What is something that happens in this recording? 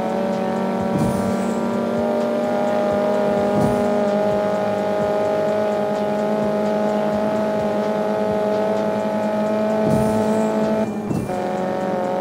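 A nitro boost whooshes behind a car.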